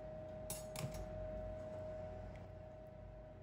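Water drips back into a metal pot.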